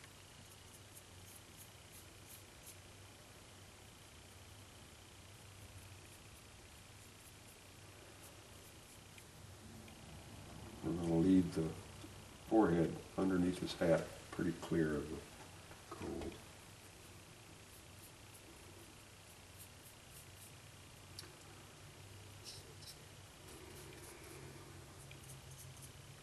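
A small knife scrapes and shaves wood.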